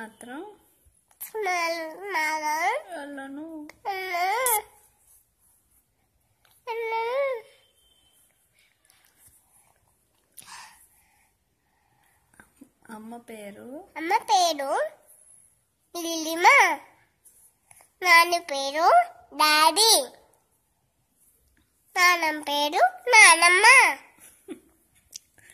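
A toddler babbles and talks close by in a high voice.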